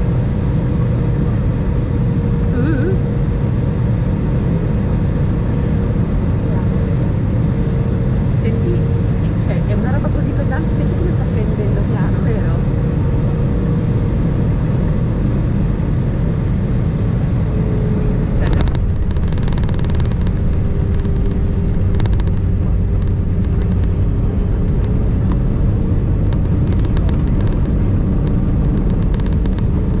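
Jet engines roar steadily from inside a plane cabin.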